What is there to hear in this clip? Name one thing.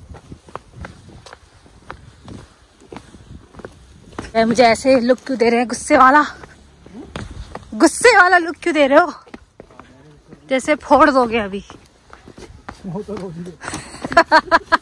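Footsteps scuff along a dirt path.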